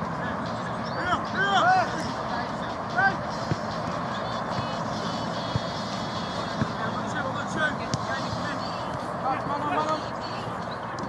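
Men shout to each other across an outdoor pitch from a distance.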